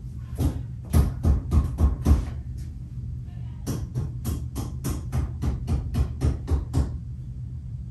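A woman claps her hands in a quick rhythm.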